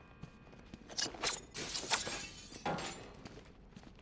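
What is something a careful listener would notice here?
Thrown blades strike targets with sharp metallic clinks.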